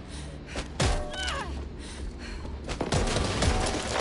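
A wooden door splinters and breaks apart.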